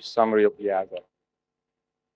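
A man speaks calmly into a microphone through loudspeakers.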